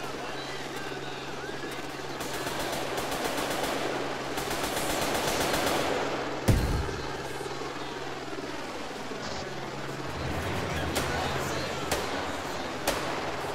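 Footsteps run over gravel and grass.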